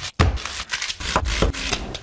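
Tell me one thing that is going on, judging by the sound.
A knife chops on a wooden board.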